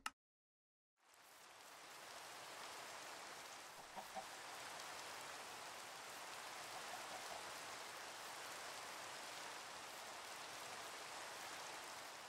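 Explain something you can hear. Rain falls steadily outdoors.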